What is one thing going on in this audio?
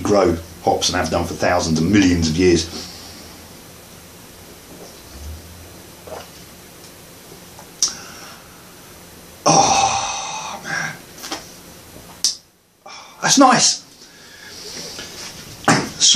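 A middle-aged man talks calmly and close up.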